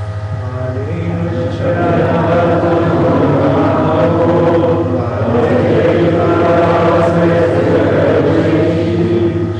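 A congregation of men and women sings together in a large room.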